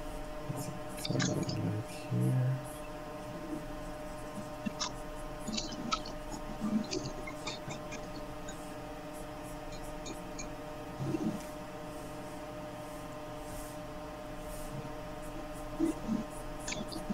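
A man speaks briefly and calmly through an online call.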